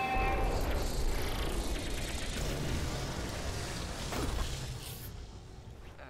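Electricity crackles and roars loudly, then cuts off.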